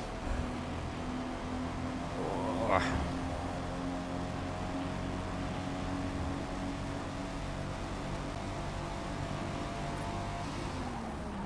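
A racing car engine roars at high revs, holding a steady pitch.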